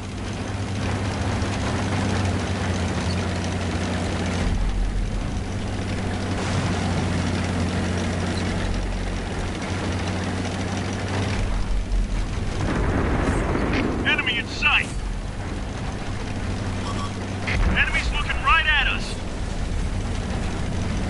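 A tank engine rumbles and drones steadily.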